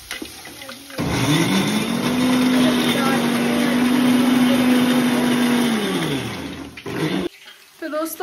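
A mixer grinder whirs loudly, rising and then winding down.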